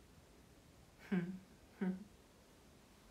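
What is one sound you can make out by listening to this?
A young woman speaks two short words close to a microphone.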